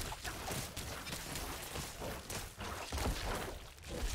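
A wet, booming burst erupts.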